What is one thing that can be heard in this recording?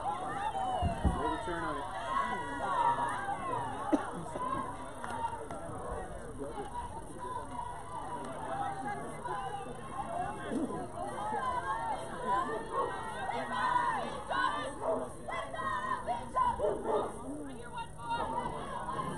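Young girls call out and cheer across an open field outdoors.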